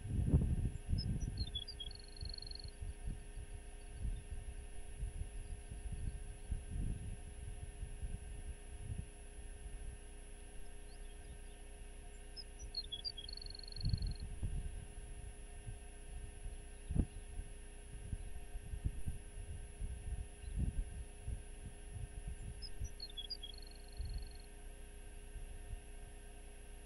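Wind buffets outdoors in gusts.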